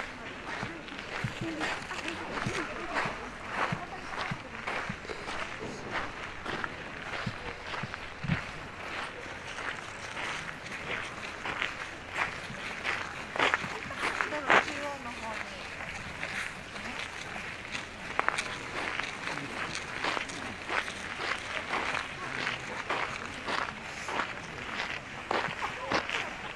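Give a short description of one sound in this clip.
Footsteps crunch steadily on gravel outdoors.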